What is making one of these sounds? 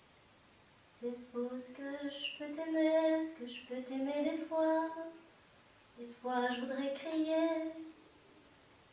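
An older woman sings in a clear, sustained voice nearby.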